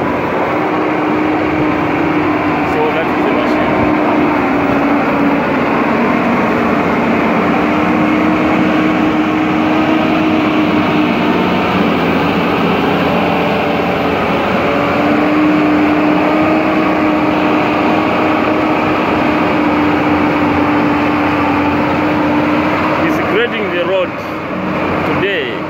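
A diesel motor grader's engine runs with a steady drone.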